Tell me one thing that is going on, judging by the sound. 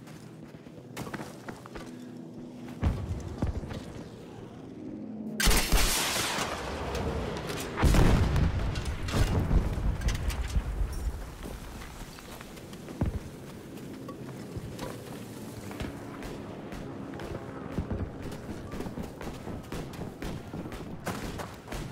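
A heavy gun fires in bursts.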